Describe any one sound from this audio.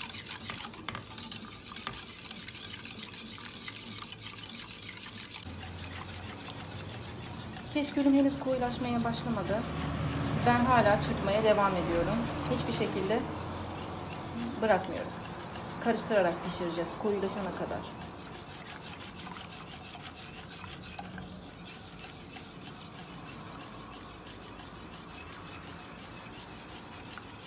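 A wire whisk beats liquid in a metal bowl with quick, rhythmic scraping.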